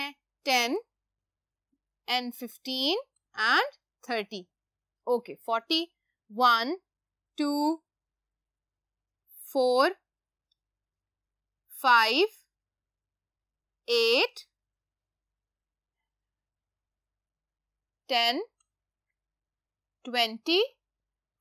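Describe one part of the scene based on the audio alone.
A woman speaks calmly and clearly in short phrases, close to a microphone.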